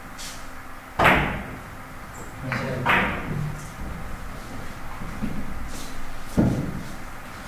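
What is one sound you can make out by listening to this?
A cue strikes a billiard ball with a sharp knock.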